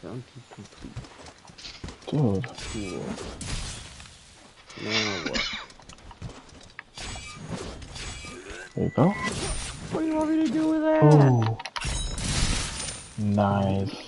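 A sword slashes into a wooden post with heavy thuds.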